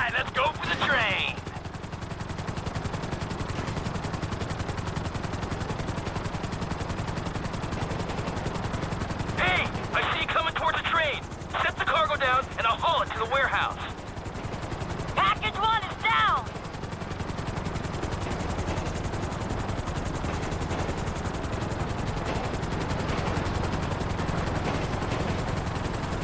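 A helicopter's rotor thuds steadily overhead.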